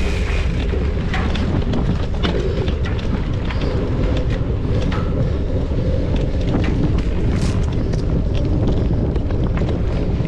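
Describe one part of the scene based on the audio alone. Bike parts rattle and clack over bumps.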